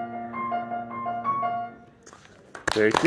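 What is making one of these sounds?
A piano plays a few notes.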